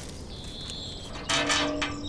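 A metal grill grate rattles.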